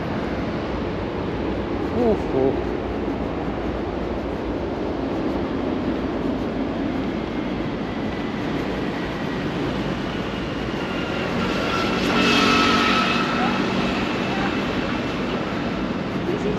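Traffic hums steadily in the distance outdoors.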